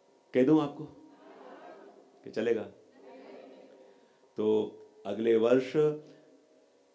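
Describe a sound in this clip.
A man speaks slowly and calmly into a microphone, in short phrases with pauses, heard in a reverberant hall.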